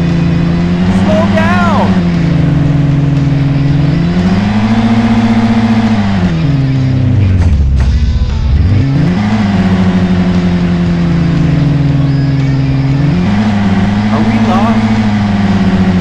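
Tyres squeal on the road.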